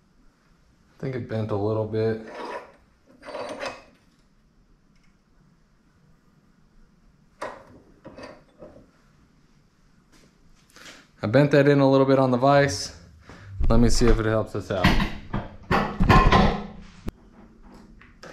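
A man talks close by, calmly and with pauses.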